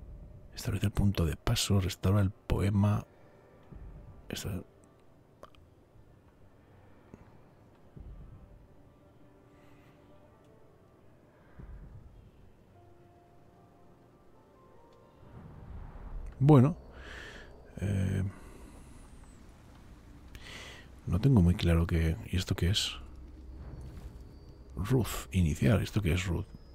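A man talks with animation close to a microphone, in bursts with pauses.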